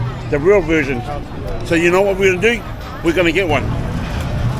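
A man talks animatedly close to the microphone.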